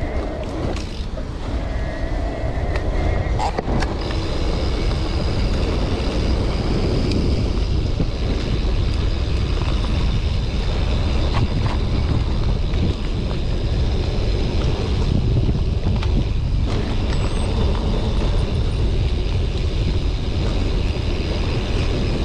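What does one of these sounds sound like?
Wind buffets loudly against a microphone outdoors.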